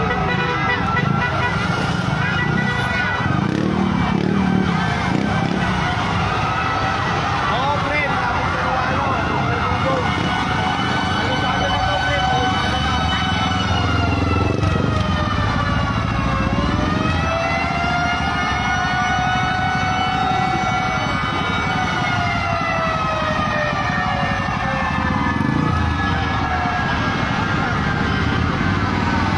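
Vehicle engines rumble steadily in slow traffic.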